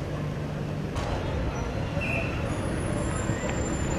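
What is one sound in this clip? Motorbikes drive past on a road.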